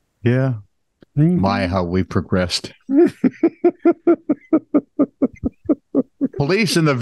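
A middle-aged man speaks with animation through a microphone over an online call.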